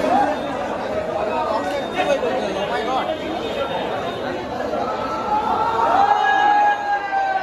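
A crowd of young men chatter and shout loudly close by.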